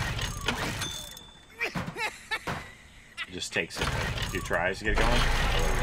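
A man pulls a generator's starter cord with quick rattling tugs.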